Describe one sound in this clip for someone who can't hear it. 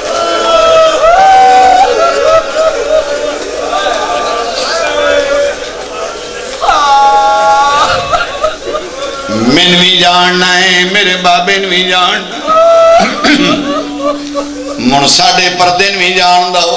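A man recites with emotion in a melodic, chanting voice through a microphone.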